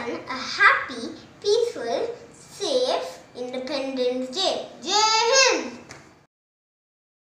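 A young boy speaks close to the microphone with animation.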